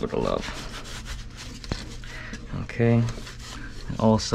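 A cloth rubs and wipes against a metal plate.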